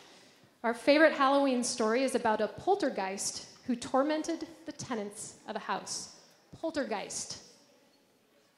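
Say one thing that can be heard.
A woman speaks clearly into a microphone, heard through loudspeakers in a large echoing hall.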